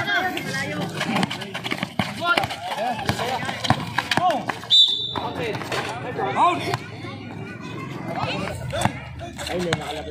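A basketball bounces on a concrete court.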